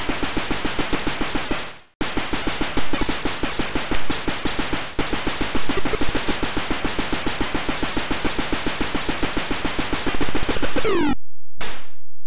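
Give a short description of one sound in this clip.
Rapid buzzy gunfire rattles from an old computer game.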